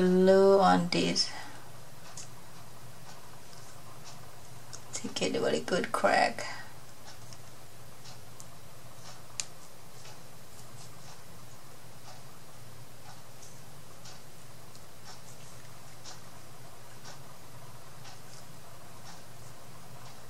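A paintbrush dabs and scrapes softly against wood.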